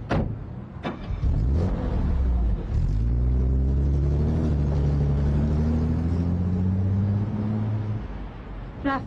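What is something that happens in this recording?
A car engine starts and revs as the car pulls away.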